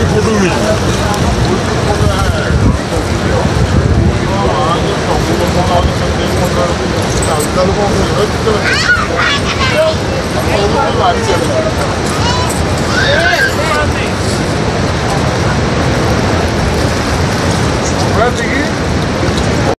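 Several men talk with animation nearby.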